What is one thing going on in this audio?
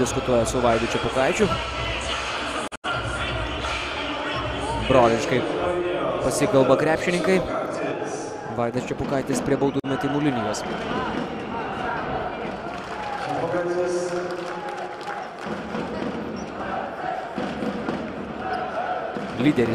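A crowd cheers and chants in a large echoing arena.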